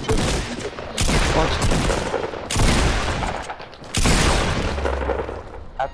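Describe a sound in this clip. Gunfire rings out in rapid bursts.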